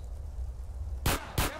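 Two gunshots ring out sharply.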